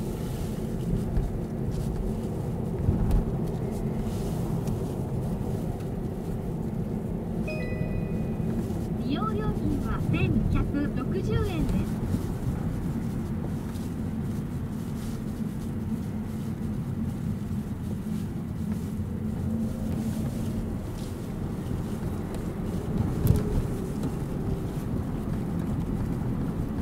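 Tyres roll on the road surface.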